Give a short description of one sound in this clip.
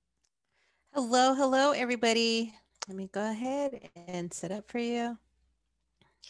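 A woman speaks warmly over an online call, close to a headset microphone.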